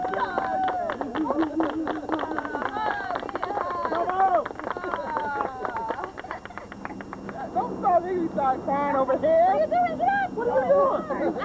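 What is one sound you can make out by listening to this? A group of men and women sings together outdoors.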